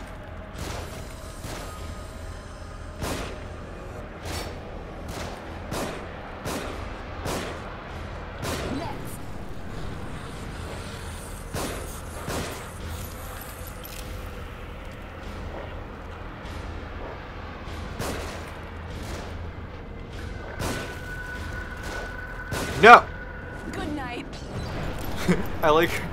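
Explosions boom and rumble.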